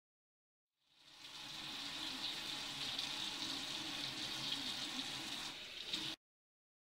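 Water runs from a tap into a metal sink.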